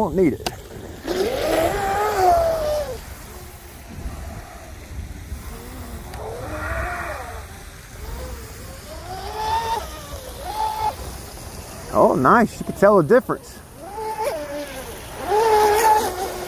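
A small model boat motor whines and revs up and down across the water.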